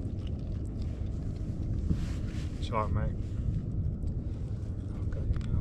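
Wind rumbles steadily across the microphone out on open water.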